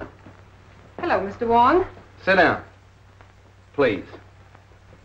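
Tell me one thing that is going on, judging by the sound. A woman speaks briefly in reply.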